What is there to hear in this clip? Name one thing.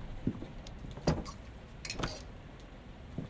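A locked door handle rattles.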